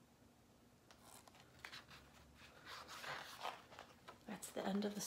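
Book pages rustle and flap as they turn.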